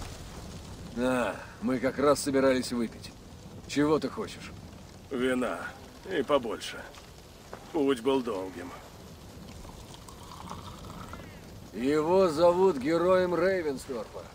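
A man speaks calmly in a deep voice, close by.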